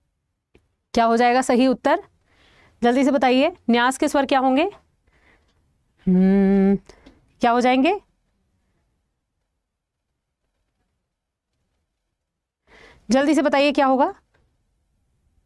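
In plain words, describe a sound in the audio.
A young woman speaks with animation into a close microphone, in short phrases with long pauses.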